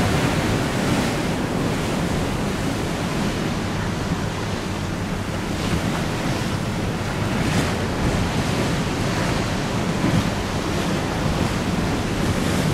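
Wind blusters steadily across an open microphone outdoors.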